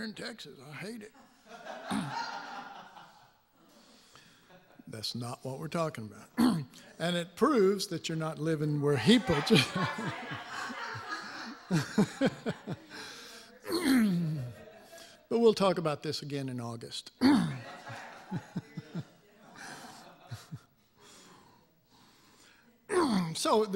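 An older man speaks with animation into a microphone in a reverberant hall.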